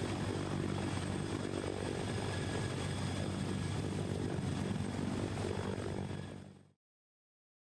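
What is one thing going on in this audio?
A helicopter's turbine engines whine at a high pitch.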